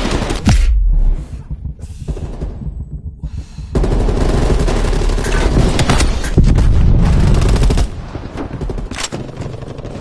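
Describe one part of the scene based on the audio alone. A rifle fires loud gunshots.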